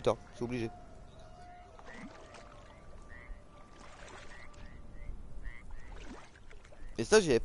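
Water sloshes around legs wading through shallow water.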